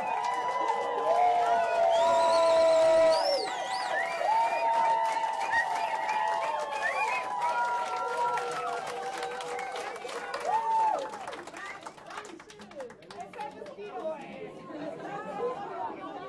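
A large crowd cheers loudly, then the cheering fades.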